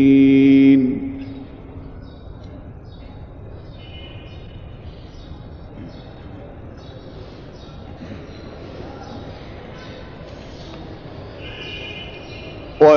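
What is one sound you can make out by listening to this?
A man chants in a long, drawn-out voice, heard through a microphone in an echoing space.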